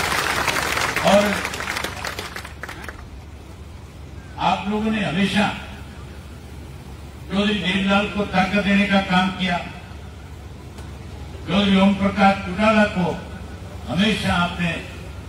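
A middle-aged man speaks forcefully into a microphone through a loudspeaker, in short bursts.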